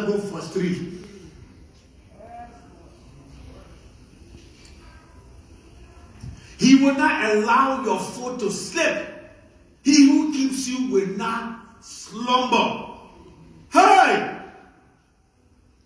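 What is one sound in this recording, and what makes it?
A man preaches loudly through a microphone in an echoing hall.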